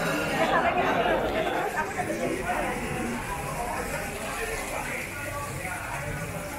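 A crowd of men and women chat nearby in a murmur of voices.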